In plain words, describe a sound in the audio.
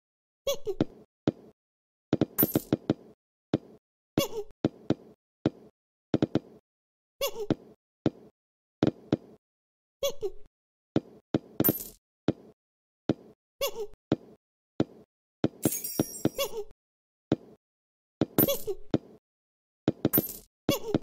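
A cartoon ball bounces with short, quick thumps again and again.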